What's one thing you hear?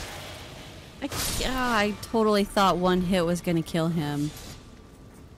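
A sword slashes and strikes with sharp metallic hits.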